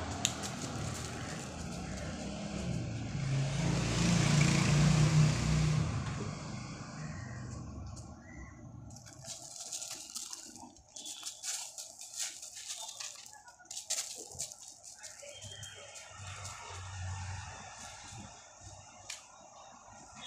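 A dog's paws crunch and scuff on gravel.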